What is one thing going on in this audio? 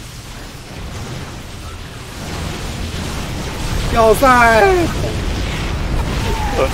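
Game weapons fire and explosions rumble in a battle.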